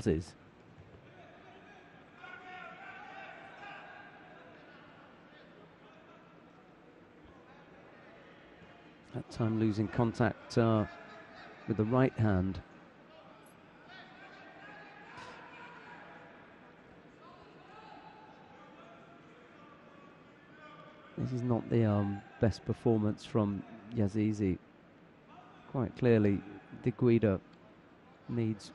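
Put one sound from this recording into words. A sparse crowd murmurs in a large echoing hall.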